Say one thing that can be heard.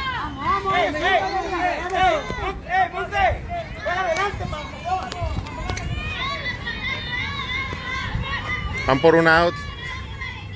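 Young women shout and cheer nearby.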